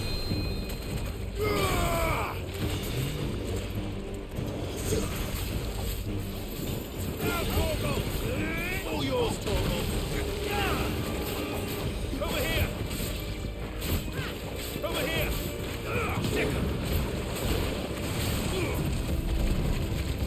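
A huge monster roars and groans.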